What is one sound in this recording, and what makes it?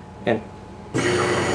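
A hand blender whirs in a jar.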